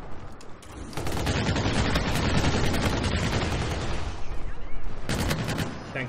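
A rifle fires in a rapid burst of loud shots.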